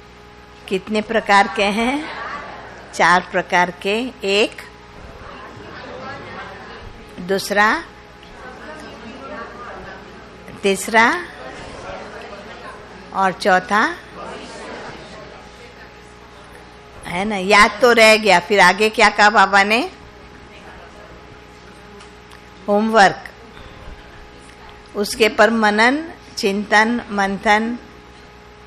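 An elderly woman speaks calmly into a microphone, with pauses between phrases.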